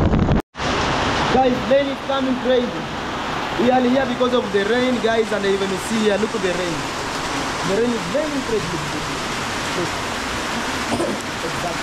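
A young man speaks cheerfully and close to the microphone.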